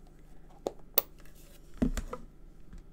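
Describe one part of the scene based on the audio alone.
A stamp taps against a hard surface.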